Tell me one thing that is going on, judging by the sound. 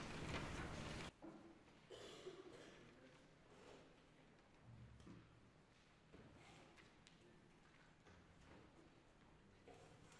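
Footsteps thud softly on a wooden stage.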